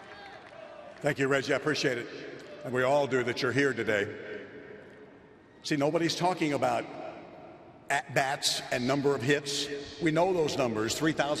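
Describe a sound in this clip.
An elderly man speaks calmly and warmly into a microphone over loudspeakers.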